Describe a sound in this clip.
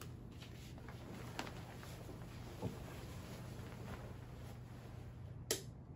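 A blanket rustles as it is pulled over a bed.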